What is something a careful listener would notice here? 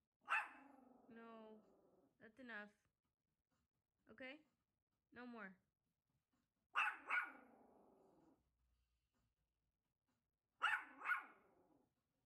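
A small dog barks sharply in short bursts.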